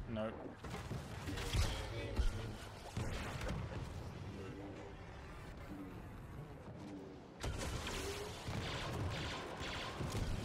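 Blasters fire in rapid bursts.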